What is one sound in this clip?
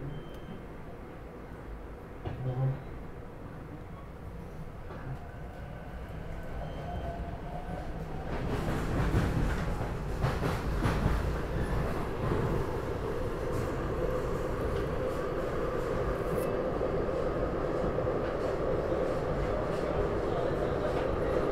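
A train rumbles along, getting louder as it speeds up.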